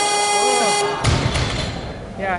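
A heavy barbell crashes down onto the platform with a thud.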